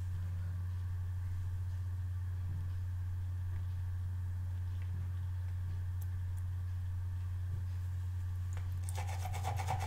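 A small brush scrubs against a rubber cleaning pad with a soft scratching.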